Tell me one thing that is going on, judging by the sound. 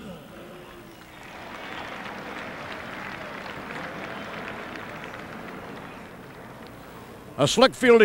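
A crowd cheers in a large open stadium.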